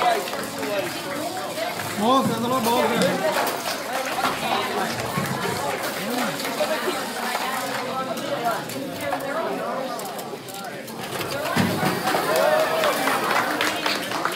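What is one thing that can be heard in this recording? Robot motors whir as small robots drive.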